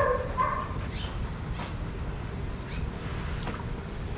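A dog splashes about in shallow water.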